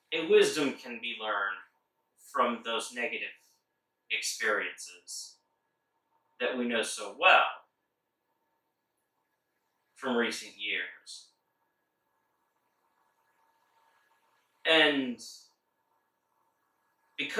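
A man speaks in short, animated bursts close by, with silent pauses between them.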